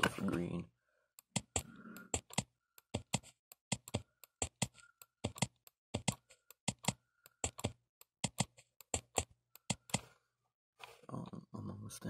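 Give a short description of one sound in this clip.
Keys click rapidly on a keyboard.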